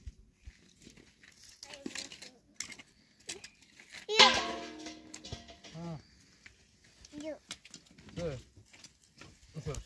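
A man scrapes and taps at a small fire pit.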